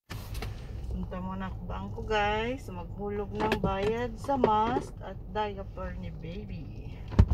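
A woman speaks calmly close by inside a car.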